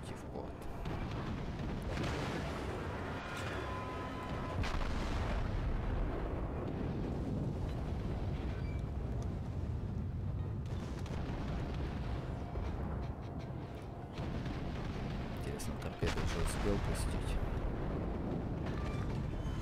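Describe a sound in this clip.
Shells splash and explode on the water.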